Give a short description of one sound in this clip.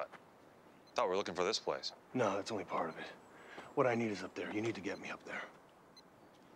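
A man speaks calmly and firmly at close range.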